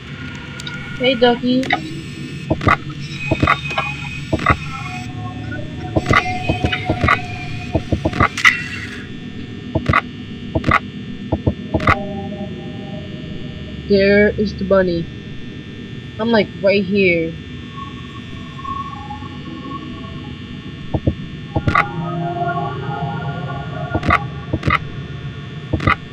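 Short electronic clicks sound again and again as a monitor switches views.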